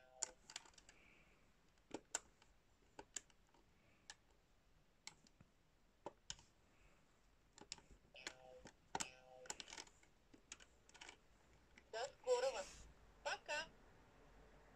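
A toy computer plays short electronic beeps and tunes.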